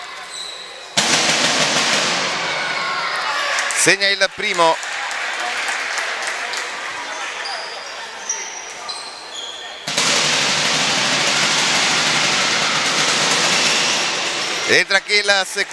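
A crowd cheers and applauds loudly in an echoing hall.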